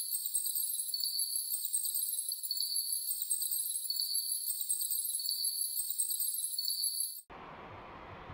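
High, tinkling electronic music plays, then stops abruptly.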